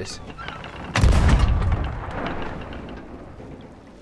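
A cannon fires with a loud boom that slowly fades.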